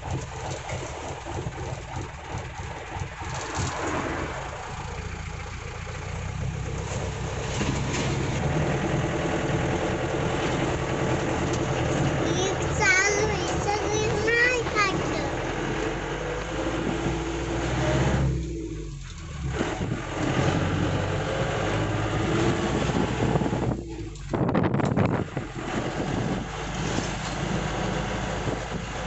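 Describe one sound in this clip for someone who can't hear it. An old vehicle engine rumbles and rattles steadily while driving.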